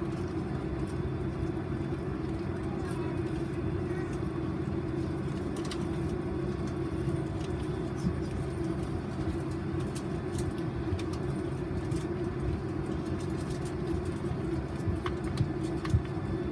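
A steady low hum drones inside an aircraft cabin.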